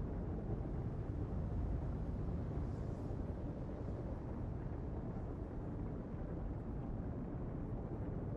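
A spaceship's engines hum with a deep, steady rumble.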